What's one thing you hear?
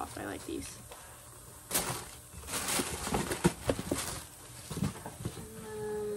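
Wrapping paper rustles and crinkles close by.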